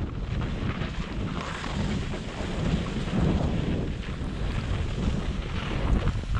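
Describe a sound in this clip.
Skis hiss and swish through soft snow close by.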